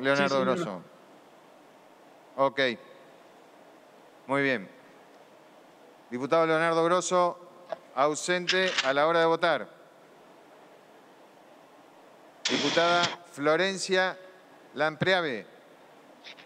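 An elderly man speaks calmly into a microphone in short phrases, with pauses between them.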